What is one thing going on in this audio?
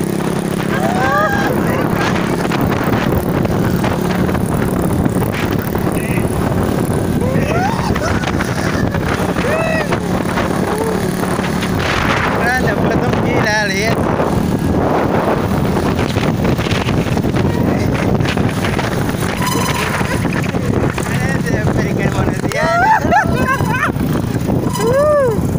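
A motorbike engine hums steadily close by.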